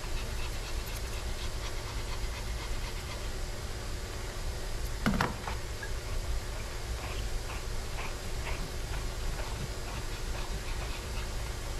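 Scissors snip quickly through fur, close by.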